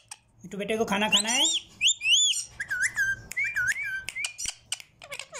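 A parrot whistles in sharp rising and falling notes.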